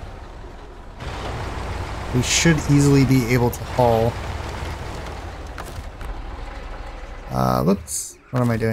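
A heavy truck engine rumbles at idle.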